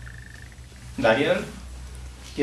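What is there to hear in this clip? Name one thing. A man speaks a few words, heard from across a room.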